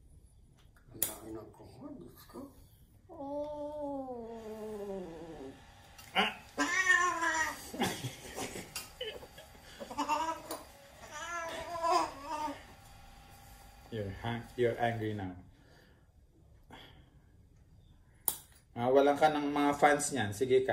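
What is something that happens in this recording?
A cat meows loudly and repeatedly in protest.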